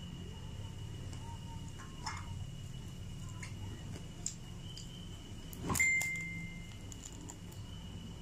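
A young woman chews food close to the microphone.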